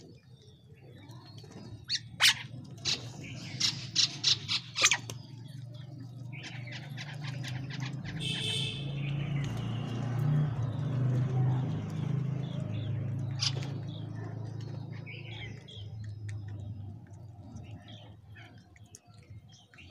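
Small birds chirp and chatter close by.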